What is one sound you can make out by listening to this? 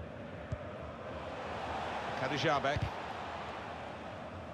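A stadium crowd swells into a louder cheer and then settles.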